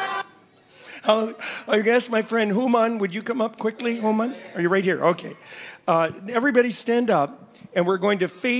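An elderly man talks calmly through a microphone.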